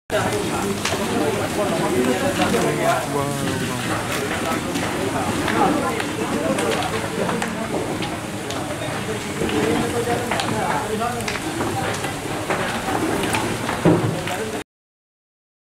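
Flames roar and crackle as a house burns nearby.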